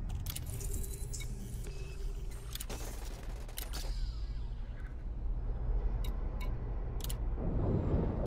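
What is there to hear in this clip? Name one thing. Interface beeps and clicks sound sharply.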